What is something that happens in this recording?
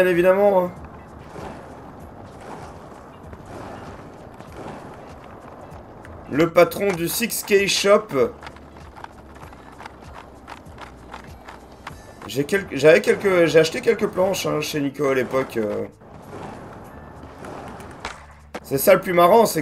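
Skateboard wheels roll and clatter on pavement.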